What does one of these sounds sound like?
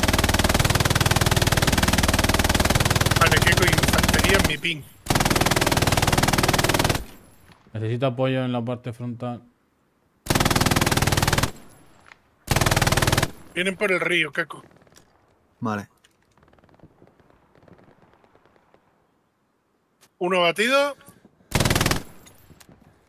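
A machine gun fires in loud, rapid bursts.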